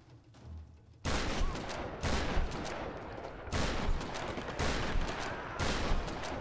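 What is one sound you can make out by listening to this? A man talks into a microphone with animation.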